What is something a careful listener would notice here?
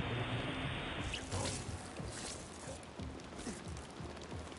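An electric energy burst crackles and hums.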